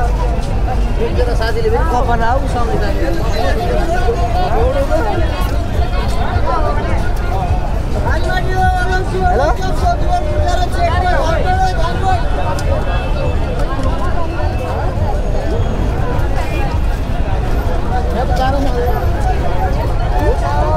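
A crowd of young people chatters and shouts all around outdoors.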